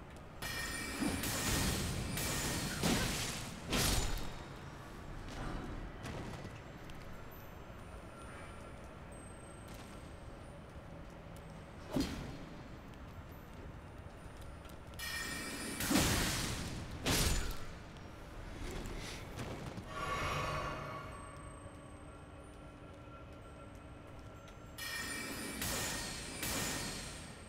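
A sword swishes and clangs in combat.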